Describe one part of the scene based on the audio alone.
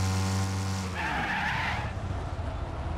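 Car tyres hiss and skid across the track.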